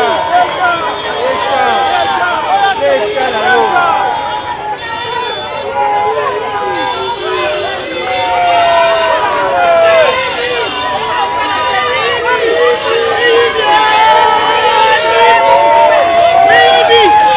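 A large crowd of men and women shouts and cheers loudly outdoors.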